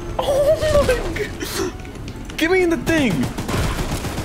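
A young man exclaims with animation into a close microphone.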